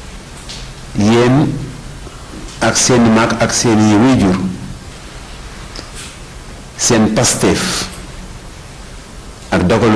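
A man shouts loudly through a loudspeaker in short bursts.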